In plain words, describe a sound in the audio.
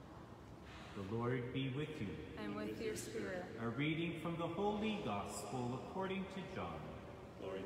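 A middle-aged man speaks calmly into a microphone in an echoing hall.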